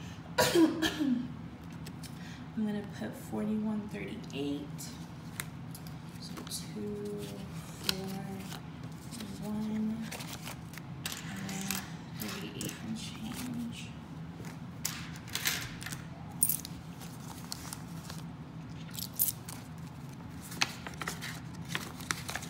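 A paper envelope rustles as it is handled.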